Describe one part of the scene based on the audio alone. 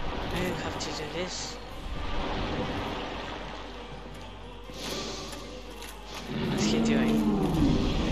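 Swords swing and clash with metallic hits.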